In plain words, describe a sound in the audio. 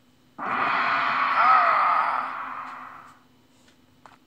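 A loud magical whoosh swirls and slowly fades.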